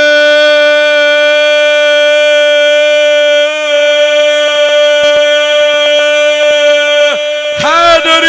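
A man chants a long, loud held note through a microphone.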